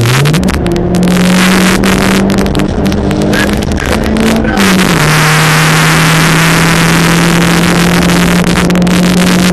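A car engine roars loudly at high revs, shifting gear as the car speeds along.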